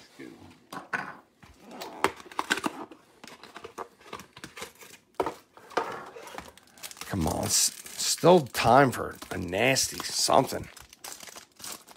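A plastic wrapper crinkles and tears as it is pulled open.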